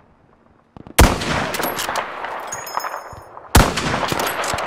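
A rifle fires with a loud, sharp crack.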